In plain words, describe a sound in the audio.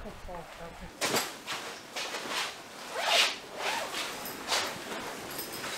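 Heavy canvas rustles and crinkles as it is handled.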